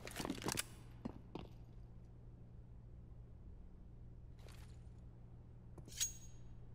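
Footsteps tap on a hard floor in an echoing interior.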